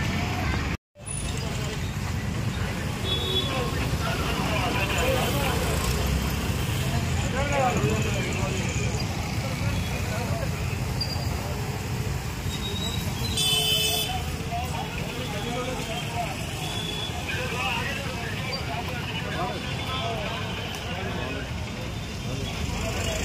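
Street traffic rumbles steadily.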